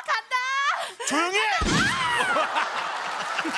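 A young woman shouts loudly through a microphone.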